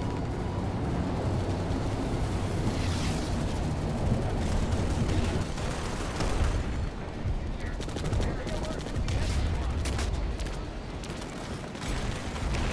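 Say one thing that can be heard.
A vehicle engine rumbles steadily as it drives over rough ground.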